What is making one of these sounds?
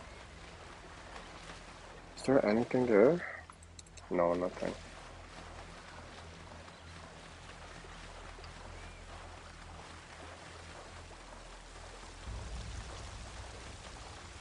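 Water splashes as a swimmer paddles along.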